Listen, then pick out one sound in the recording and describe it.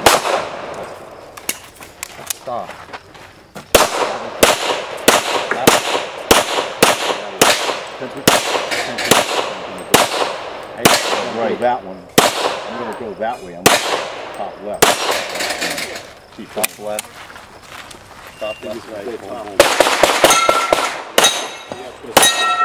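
A pistol fires quick, loud shots outdoors, each one echoing briefly.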